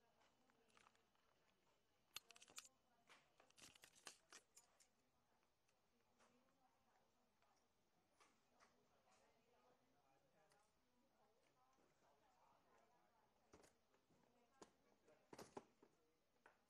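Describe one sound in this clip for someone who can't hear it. Papers rustle and are set down on a table.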